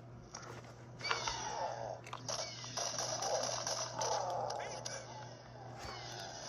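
Gunfire from a video game plays through a small speaker.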